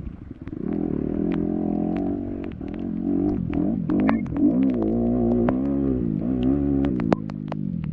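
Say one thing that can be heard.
Mud and debris spatter and knock against a dirt bike.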